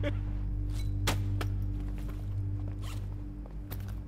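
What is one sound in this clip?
Small hard tiles clatter as a bag is shaken out.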